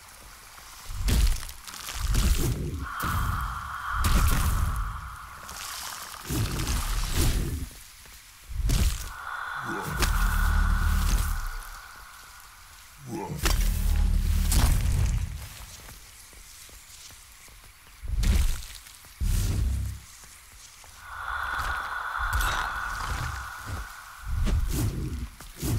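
Weapon strikes slash and thud against creatures.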